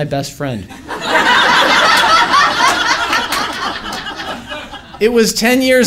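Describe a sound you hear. An audience laughs together.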